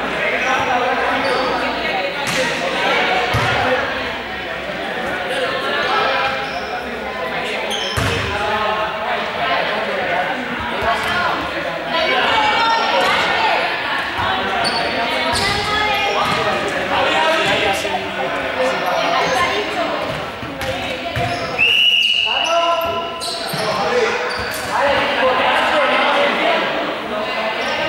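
Children shout and chatter throughout a large echoing hall.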